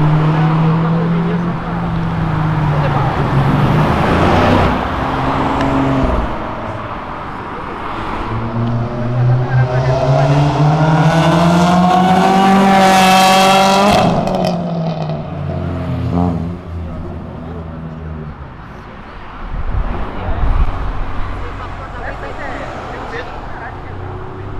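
Car engines rev loudly on a street at night.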